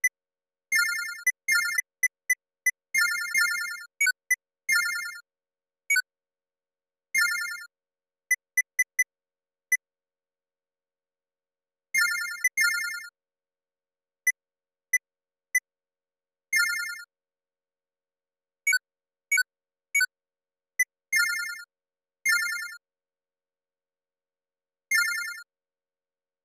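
Short electronic menu beeps and chimes sound as a cursor moves and selections are made.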